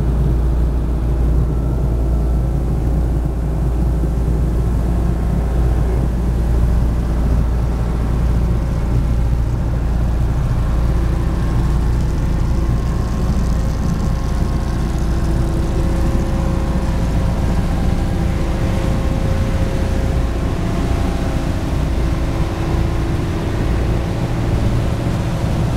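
An inboard boat engine chugs at cruising speed.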